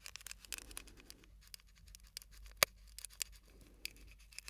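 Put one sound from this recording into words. Fingers tap and scratch on a microphone's cover, close up.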